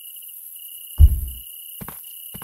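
A plastic crate drops onto a stack with a heavy thud.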